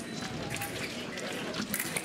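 Fencing blades clash and scrape.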